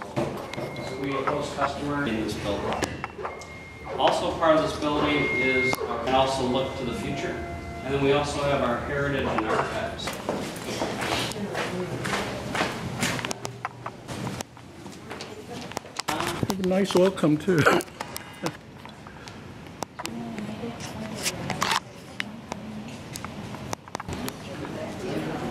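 A man speaks calmly to a group nearby, in a large room.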